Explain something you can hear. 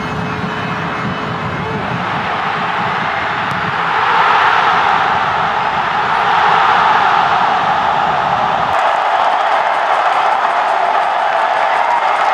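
A large stadium crowd roars steadily and swells louder.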